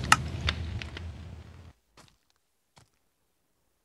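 Game menu buttons click softly.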